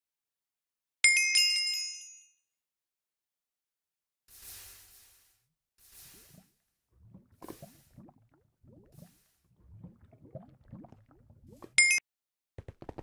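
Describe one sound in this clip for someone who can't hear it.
A bright electronic game chime rings out.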